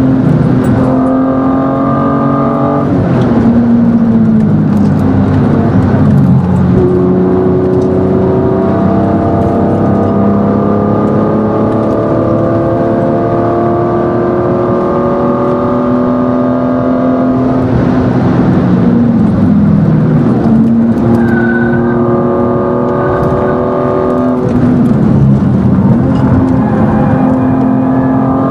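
A car engine roars loudly, rising in pitch as it revs and dropping at each gear change.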